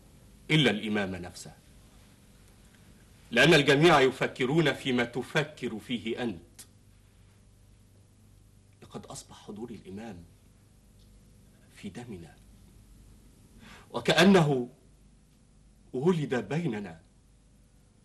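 Two men talk in turns, speaking with animation.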